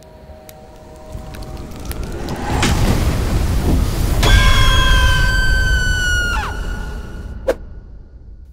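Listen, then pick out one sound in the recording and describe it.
An explosion booms with a loud roar.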